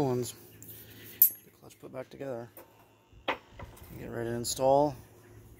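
Heavy rusty metal parts clink and knock together.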